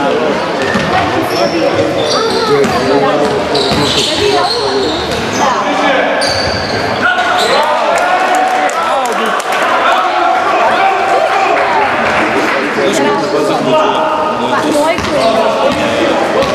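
Players shout and call out in a large echoing hall.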